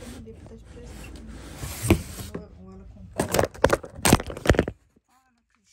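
Cardboard boxes scrape and thump as they are handled.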